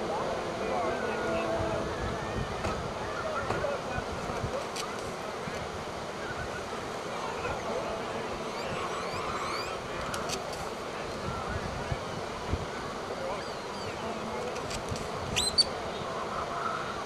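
Waves break and wash onto the shore steadily.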